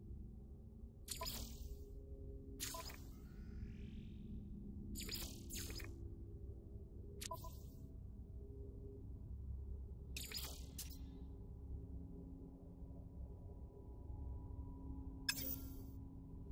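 Short electronic menu clicks and chimes sound now and then.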